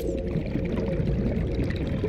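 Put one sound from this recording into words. Bubbles gurgle and fizz up through the water.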